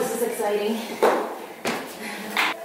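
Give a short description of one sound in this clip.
A person kneels down onto a floor cushion with a soft thump.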